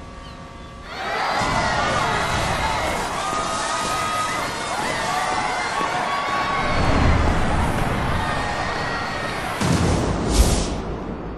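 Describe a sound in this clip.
A huge crowd cheers and roars in a large stadium.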